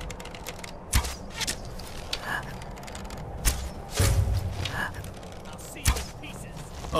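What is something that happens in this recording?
A bowstring snaps as arrows are loosed.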